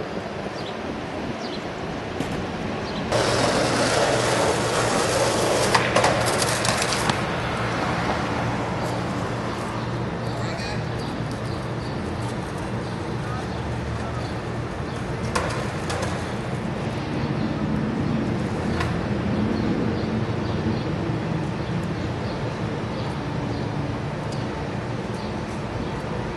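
Traffic rumbles along a city street outdoors.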